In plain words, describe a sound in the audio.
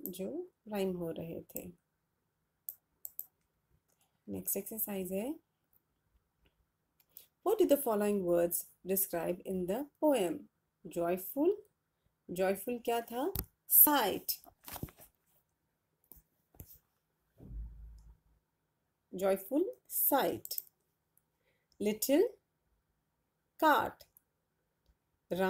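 A young woman speaks calmly and clearly into a close microphone, explaining in short phrases with pauses.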